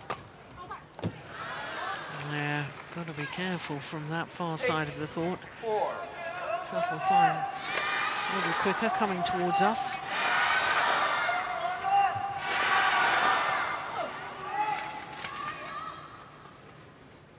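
A crowd cheers and claps in a large echoing hall.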